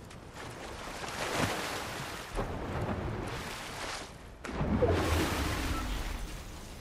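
A body splashes into water and wades through it.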